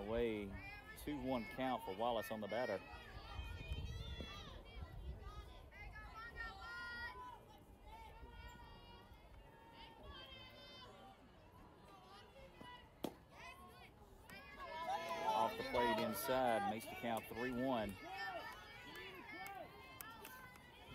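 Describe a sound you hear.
Young women cheer and chant outdoors from a distance.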